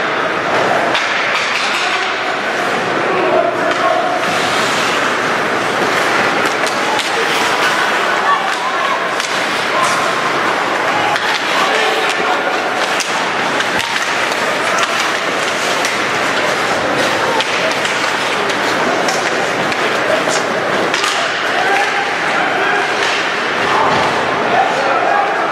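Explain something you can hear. A crowd chatters and cheers in a large echoing rink.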